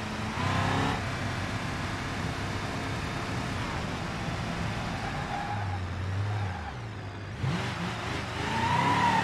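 A pickup truck's engine hums steadily as it drives.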